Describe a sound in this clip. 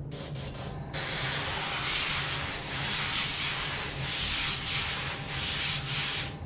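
An airbrush sprays with a steady hiss.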